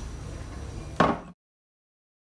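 A metal spirit level is set down on a table with a sharp knock.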